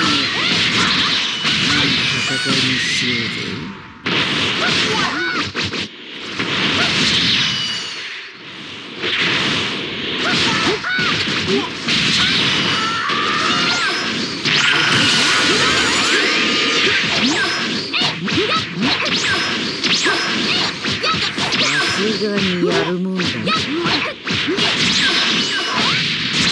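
Energy blasts whoosh and roar.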